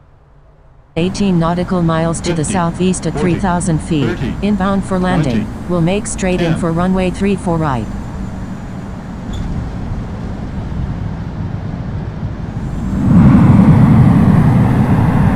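Jet engines rumble steadily and then roar louder near the end.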